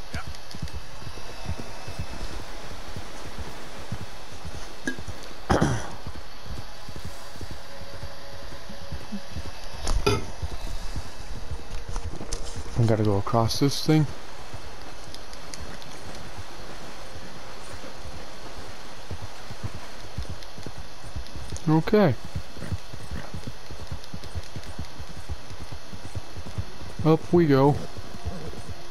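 A horse gallops with steady hoofbeats.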